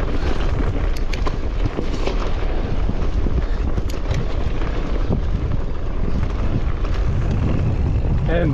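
Wind rushes loudly past a microphone outdoors.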